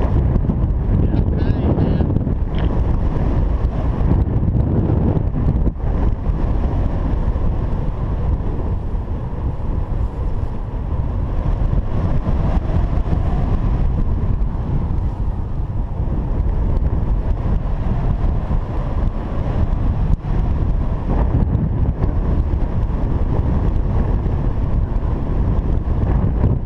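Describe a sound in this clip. Strong wind rushes and buffets steadily past the microphone.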